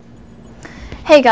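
A young girl starts speaking close to a microphone.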